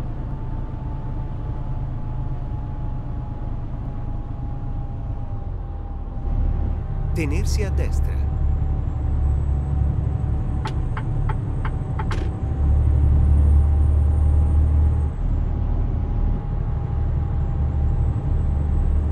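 A truck's diesel engine rumbles steadily, growing louder now and then.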